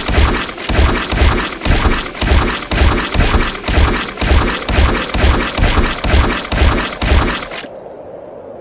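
Fists land rapid, heavy punches in a fast, steady rhythm.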